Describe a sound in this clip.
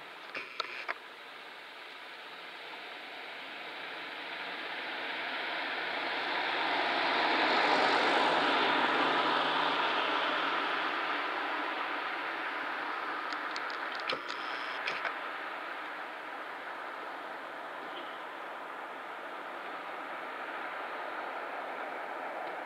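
A black bear rustles through dry leaves.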